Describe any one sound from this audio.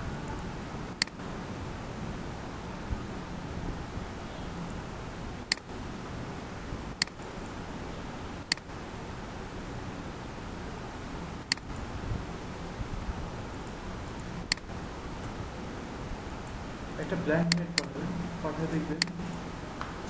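A computer mouse clicks sharply now and then.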